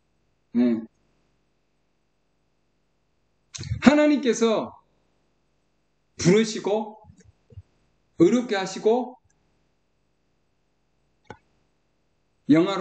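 A middle-aged man speaks calmly in short phrases over an online call.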